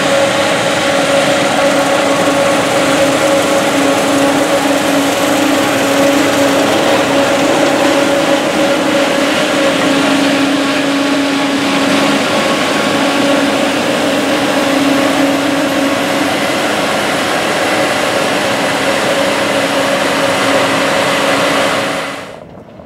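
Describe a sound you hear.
A combine harvester's engine drones loudly and steadily close by.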